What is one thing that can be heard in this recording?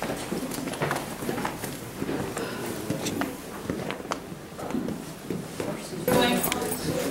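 Several adults talk quietly nearby.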